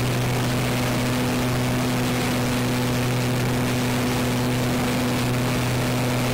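Small propeller motors hum steadily close by.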